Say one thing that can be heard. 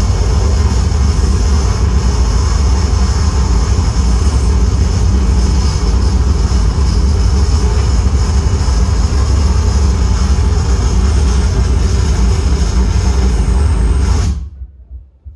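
Loud electronic synthesizer noise drones with a deep rumbling hum, then cuts off abruptly.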